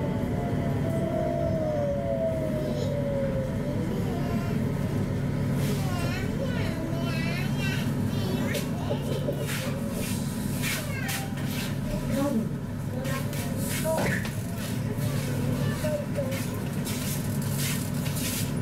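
A train hums steadily as it rolls along.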